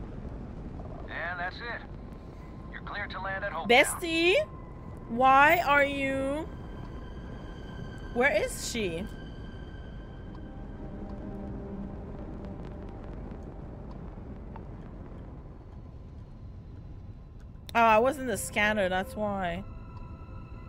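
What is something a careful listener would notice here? A young woman talks with animation into a close microphone.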